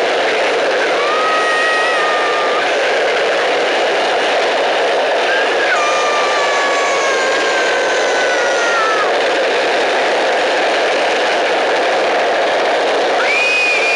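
Skateboard wheels roar steadily over rough asphalt at speed.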